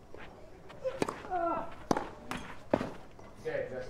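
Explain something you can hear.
A racket strikes a tennis ball with sharp pops.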